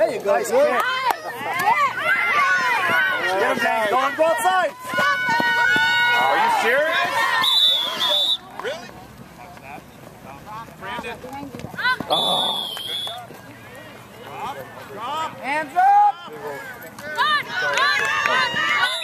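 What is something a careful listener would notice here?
Young children shout and cheer with excitement outdoors.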